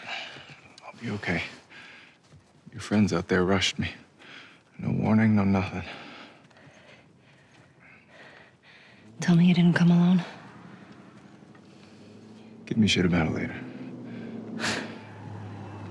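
A young man answers in a low, calm voice, close by.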